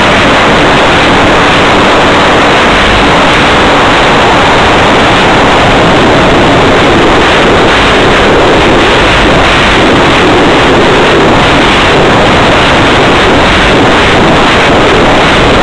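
Loud radio static hisses and crackles throughout.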